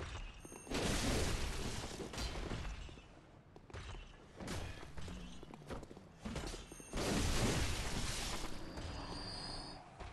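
Sword blows clash and ring out.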